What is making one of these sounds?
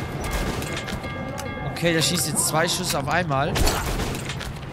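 Metal parts of a gun clank and click as it is reloaded.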